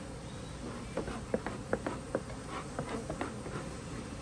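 Wooden hive parts knock and clatter as they are handled.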